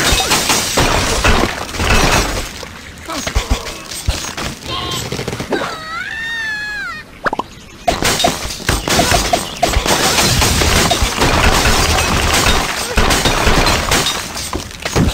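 Blocks crash, topple and shatter.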